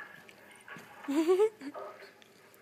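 A small kitten mews in a high, thin voice.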